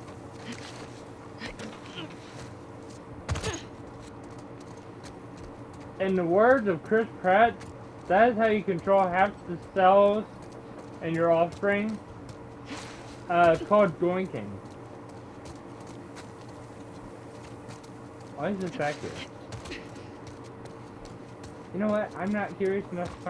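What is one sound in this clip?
Footsteps walk over hard ground and grass.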